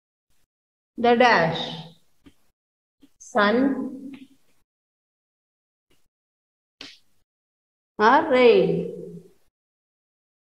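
A woman speaks clearly and slowly, as if teaching.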